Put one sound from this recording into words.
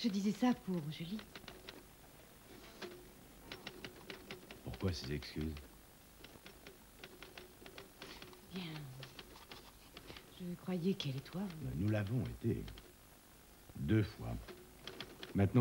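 A typewriter clatters with quick key strikes.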